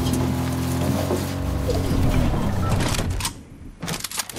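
A vehicle engine hums and winds down.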